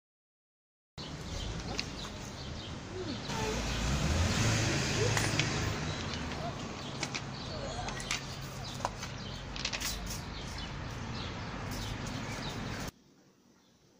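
Pebbles clatter and crunch under a person's hands.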